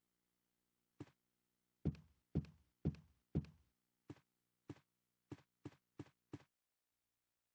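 Footsteps tap quickly across a floor.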